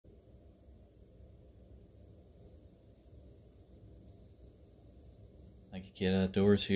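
A gas heater hisses softly.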